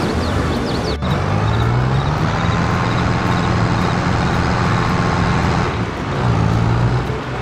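A diesel tractor engine revs up.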